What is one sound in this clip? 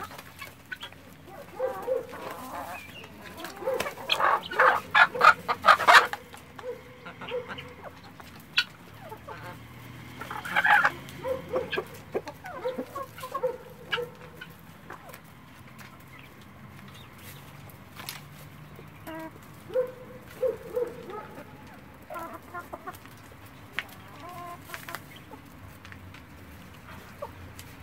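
Birds peck and scratch at dry straw.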